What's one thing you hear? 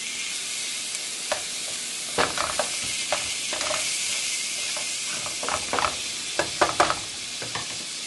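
A spatula scrapes and clicks against a frying pan.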